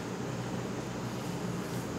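A young woman slurps noodles.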